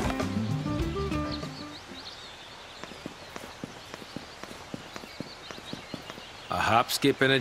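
Footsteps crunch slowly on dry dirt.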